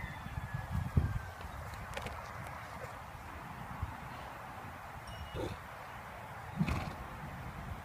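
A horse rolls in dirt with soft thuds and scraping.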